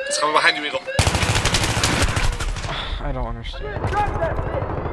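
Rapid gunfire rattles loudly nearby.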